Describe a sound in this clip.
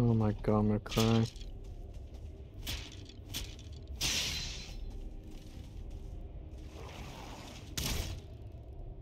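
A weapon strikes a creature with sharp hits.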